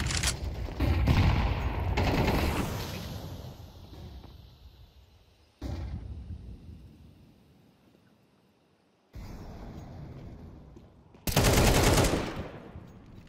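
A rifle fires loud rapid bursts of shots.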